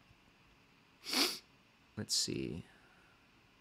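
A man breathes out heavily close to a microphone.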